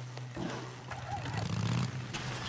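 A motorcycle engine revs up and pulls away.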